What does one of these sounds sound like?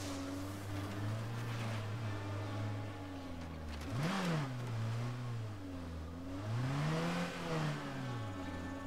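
A car engine hums steadily and revs up and down as it drives.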